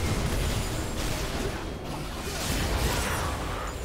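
Game characters clash with sharp hits and blasts.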